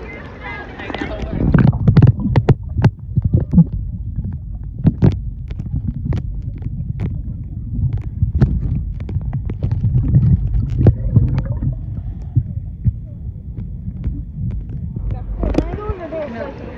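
Water rumbles and gurgles, muffled as if heard underwater.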